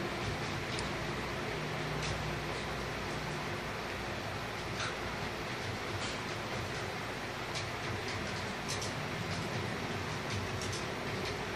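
Shoes scuff and shuffle on a hard floor during a struggle.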